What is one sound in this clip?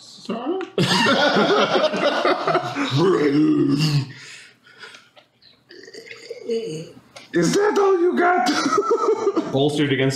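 Several men talk and laugh over an online call.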